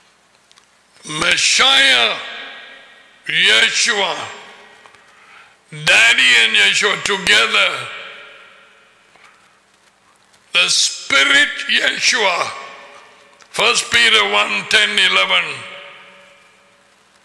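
An older man speaks close to a microphone in short, deliberate phrases with pauses between them.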